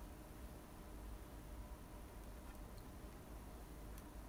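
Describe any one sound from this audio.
A piece of fruit drops into a glass of liquid with a soft plop.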